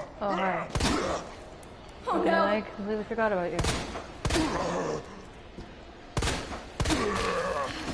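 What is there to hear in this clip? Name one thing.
Heavy blows and bangs from a fight ring out.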